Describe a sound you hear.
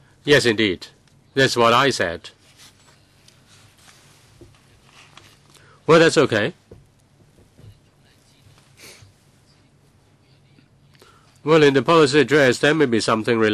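A middle-aged man speaks calmly into a microphone, in short bursts with pauses.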